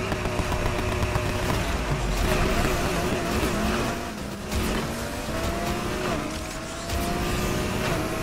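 Tyres splash through water on the road.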